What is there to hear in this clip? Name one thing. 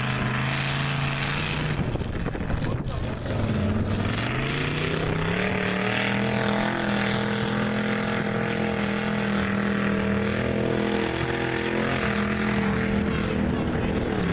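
Mud splashes and sprays from spinning tyres.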